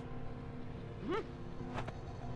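A cartoon mouse exclaims in a high, squeaky voice.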